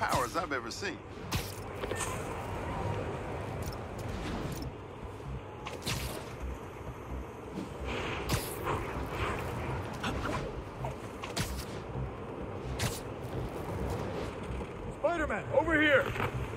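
Air whooshes past in quick rushes.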